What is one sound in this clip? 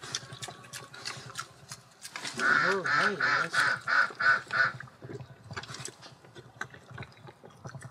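A pig eats noisily from a trough.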